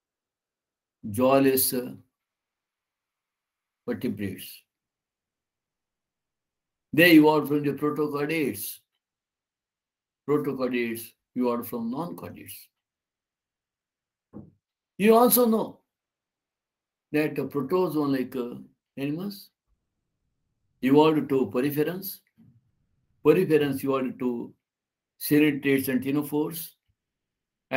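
A man speaks calmly in short phrases through a call microphone.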